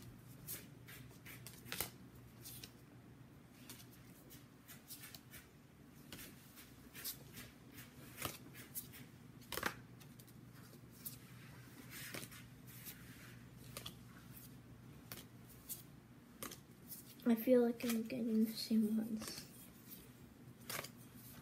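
Playing cards click and rustle in a boy's hands.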